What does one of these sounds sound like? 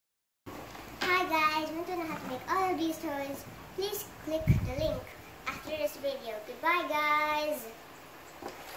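A young girl speaks cheerfully and close by.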